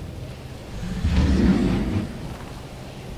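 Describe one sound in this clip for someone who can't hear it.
A deep rumbling magical blast booms and fades.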